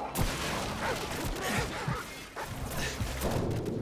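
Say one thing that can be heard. Gunshots crack in rapid bursts nearby.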